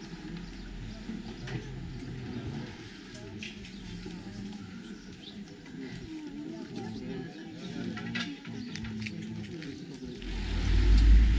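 A crowd of men and women talks and murmurs outdoors.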